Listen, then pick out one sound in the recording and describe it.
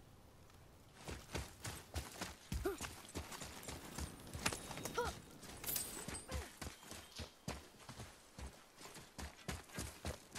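Heavy footsteps run quickly over snowy and dirt ground.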